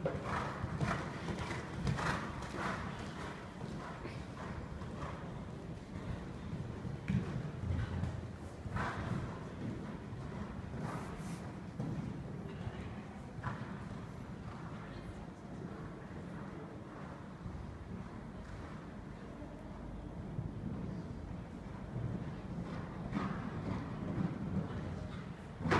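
Horse hooves thud on soft footing in a large indoor hall.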